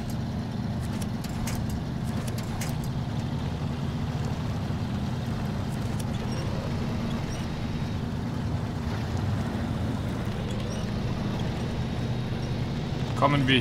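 A heavy truck engine rumbles steadily at low revs.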